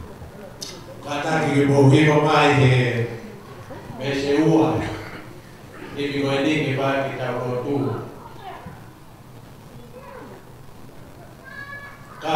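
An elderly man speaks slowly into a microphone over loudspeakers in a large echoing hall.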